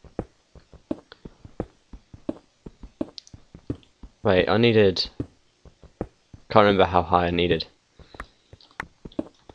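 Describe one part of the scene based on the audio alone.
Footsteps tap steadily on stone.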